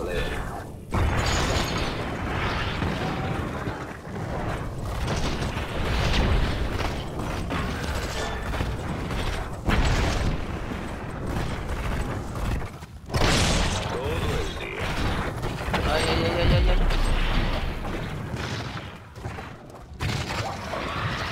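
Game explosions boom with heavy thuds.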